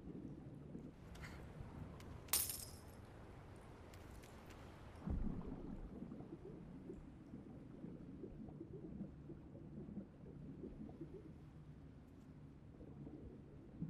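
A deep underwater rumble drones on steadily.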